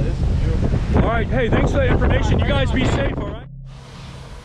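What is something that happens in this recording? A man speaks loudly over the wind, close by.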